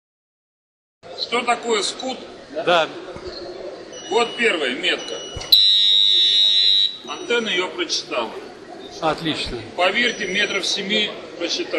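A middle-aged man speaks calmly and explains at close range into a microphone.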